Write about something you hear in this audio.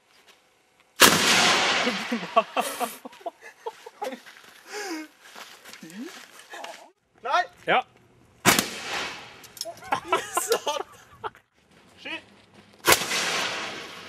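A cannon fires with a loud boom that echoes outdoors.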